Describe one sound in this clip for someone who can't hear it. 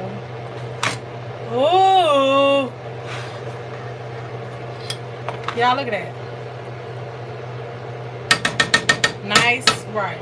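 A metal fork scrapes and taps against a pot while fluffing rice.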